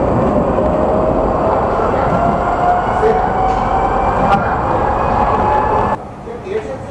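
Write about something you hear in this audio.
A tram rumbles along with a rising electric whine.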